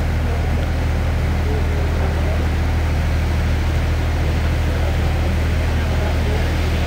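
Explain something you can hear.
A locomotive engine drones steadily as it approaches.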